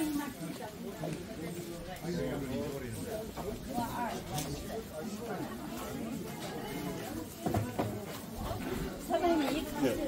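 Adult men and women chatter nearby in a crowd.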